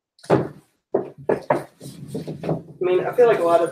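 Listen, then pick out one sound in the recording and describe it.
Books knock and slide against a shelf.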